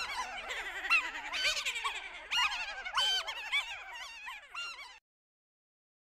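A crowd of voices laughs and jeers loudly in high, cackling tones.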